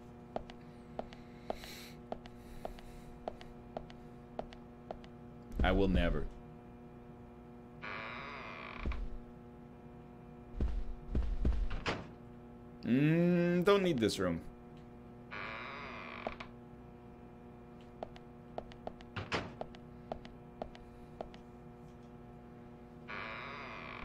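Footsteps tap steadily on a floor.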